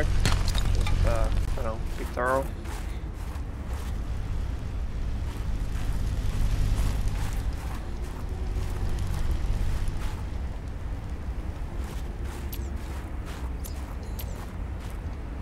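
Wind blows steadily with a low rumble.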